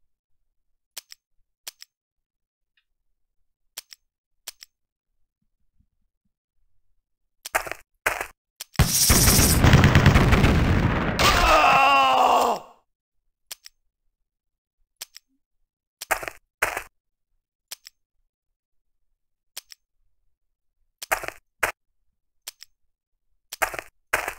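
Short interface clicks sound now and then.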